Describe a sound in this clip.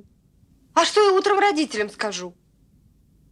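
A young woman calls out loudly from above.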